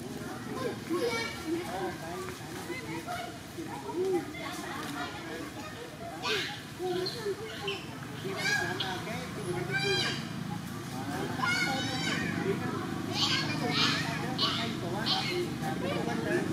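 A baby monkey squeaks softly now and then.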